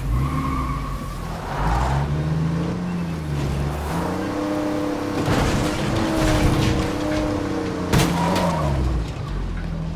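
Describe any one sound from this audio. Tyres crunch over dirt and gravel.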